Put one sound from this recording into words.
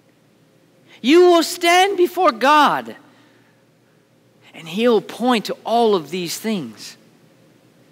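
A man speaks with animation through a headset microphone in a large echoing hall.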